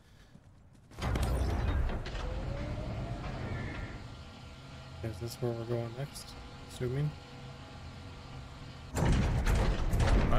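A crane motor hums steadily.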